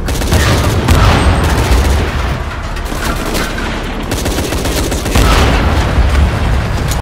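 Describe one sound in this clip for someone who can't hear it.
Explosions boom with deep rumbling.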